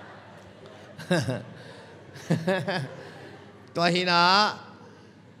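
A man speaks into a microphone, heard through loudspeakers in a large echoing hall, in short bursts.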